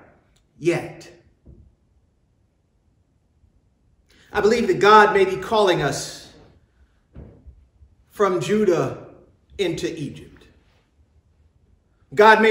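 A man speaks slowly and with emphasis into a microphone, in a room with a slight echo.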